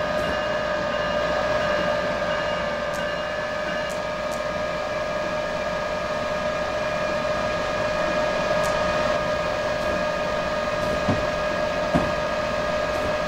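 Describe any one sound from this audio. An electric locomotive hums steadily in a tunnel.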